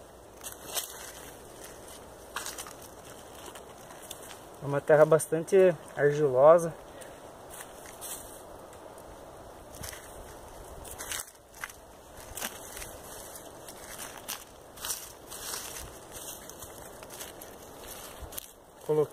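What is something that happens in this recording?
Hands press and pat loose soil, which crumbles and rustles.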